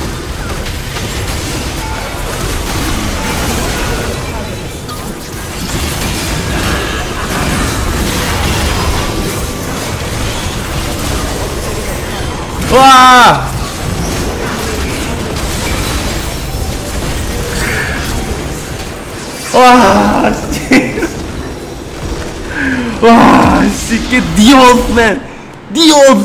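Video game battle effects clash and whoosh steadily.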